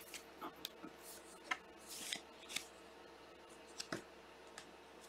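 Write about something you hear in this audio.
A plastic card sleeve crinkles softly between fingers.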